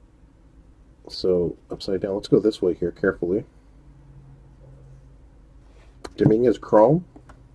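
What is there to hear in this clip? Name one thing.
Trading cards slide and rub softly against each other in a hand.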